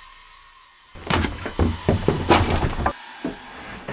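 A boot shuffles and kicks through a heap of rustling cloth.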